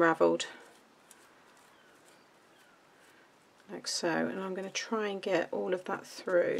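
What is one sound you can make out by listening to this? Paper rustles softly as it is handled and folded.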